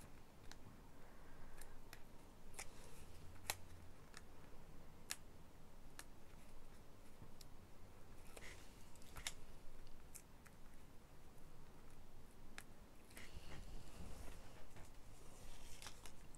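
A tool tip scratches and taps lightly on paper.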